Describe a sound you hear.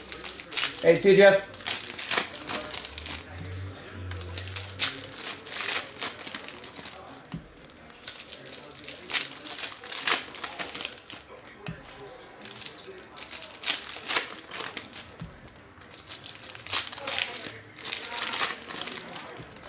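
Foil card packs crinkle and rustle as they are torn open and handled.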